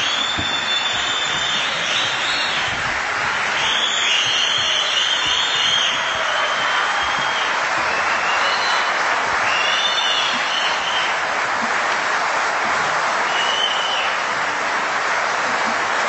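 A large crowd cheers and applauds loudly.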